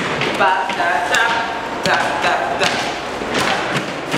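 Bare feet stomp on a hard floor.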